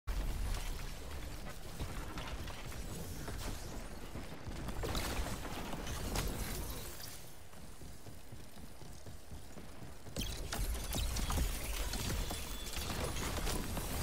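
Gunfire and energy blasts crack in quick bursts.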